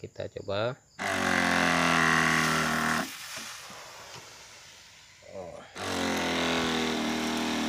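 A small engine runs loudly nearby.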